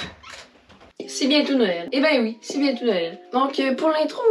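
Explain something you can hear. A teenage boy talks to the listener close by with animation.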